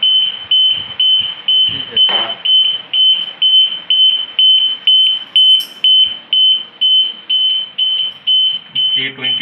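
An electronic alarm beeps rapidly and steadily at a high pitch.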